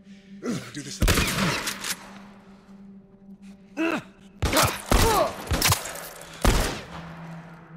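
Gunshots bang loudly in an echoing room.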